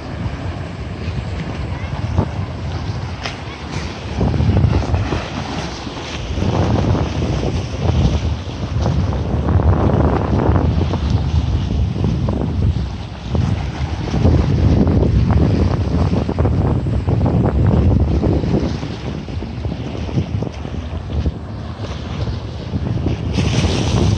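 Small waves lap on a pebbly shore.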